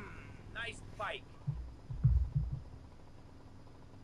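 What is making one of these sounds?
A motorbike engine rumbles while idling.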